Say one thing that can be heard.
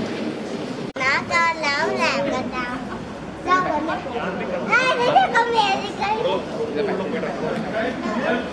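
A young girl talks and squeals with excitement close by.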